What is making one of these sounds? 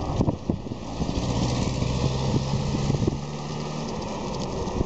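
A car engine hums as it passes close by.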